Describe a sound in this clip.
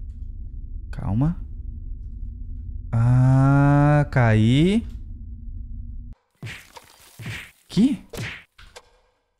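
A young man speaks and exclaims with animation into a close microphone.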